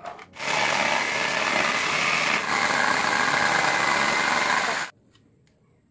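A jigsaw buzzes loudly as it cuts through a board.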